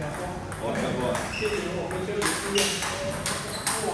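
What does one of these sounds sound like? A ping pong ball clicks sharply back and forth off paddles and a table in an echoing hall.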